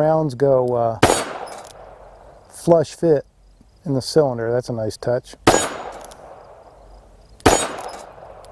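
Gunshots fire loudly outdoors, each with a sharp crack and echo.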